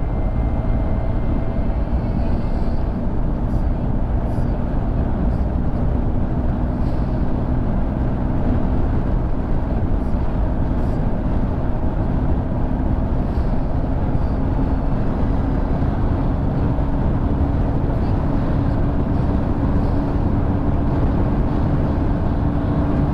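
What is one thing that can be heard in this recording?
Wind roars loudly against the rider.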